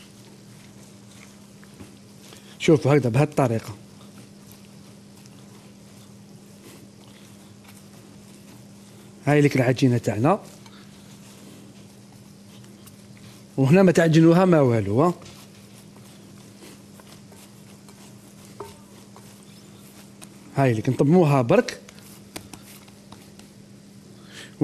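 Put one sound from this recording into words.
Hands knead soft dough in a bowl.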